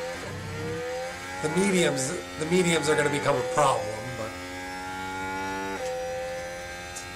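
A racing car engine whines steadily at high pitch.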